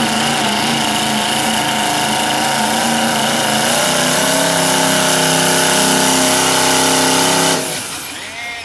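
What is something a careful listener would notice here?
A diesel truck engine roars loudly under heavy strain.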